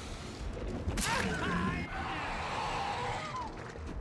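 A man screams in pain.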